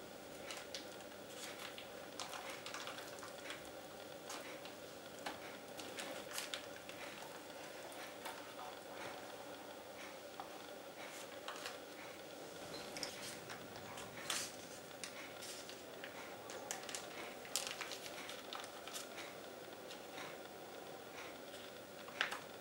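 Baking paper crinkles and rustles as it is peeled away.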